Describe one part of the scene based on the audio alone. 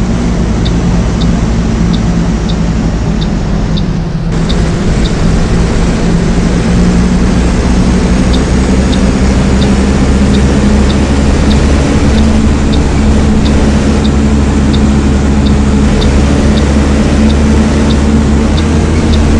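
An indicator ticks at a steady pace.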